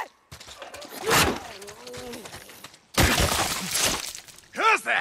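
A heavy weapon strikes a body with loud thuds.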